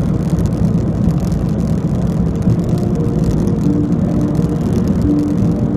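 A car's tyres roar steadily on a highway.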